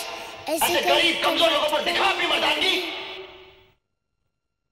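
A middle-aged woman laughs loudly into a microphone.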